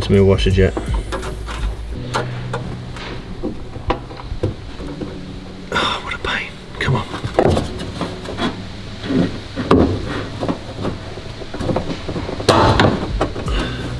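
Plastic tubing and wires rustle and click as hands handle them.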